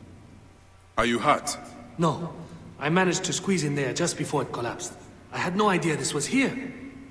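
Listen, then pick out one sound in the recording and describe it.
A man speaks calmly and clearly in a close voice.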